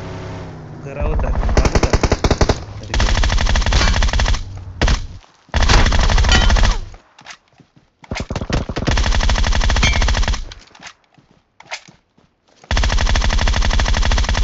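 A rifle fires in rapid loud bursts.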